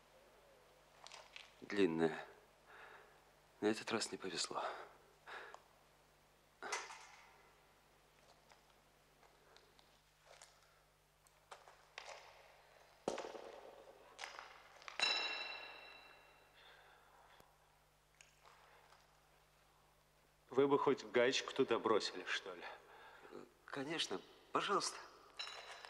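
A middle-aged man speaks in short phrases.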